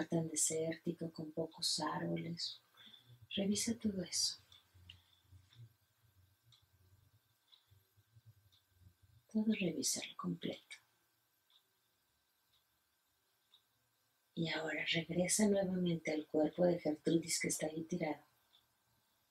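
A middle-aged woman speaks calmly and gently, close by.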